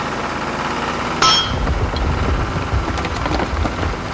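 Stones tumble and clatter onto sand.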